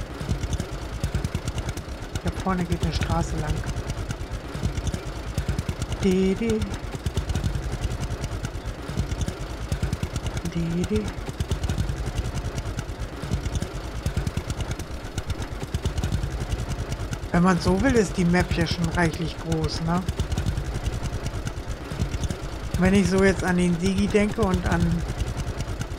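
A tractor engine chugs steadily and rumbles low.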